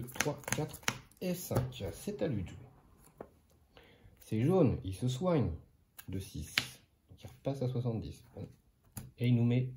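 Playing cards slide and tap on a cloth-covered table.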